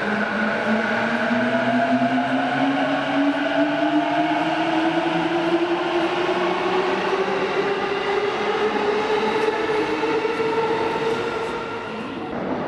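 A train pulls away with a rising electric motor whine in an echoing station.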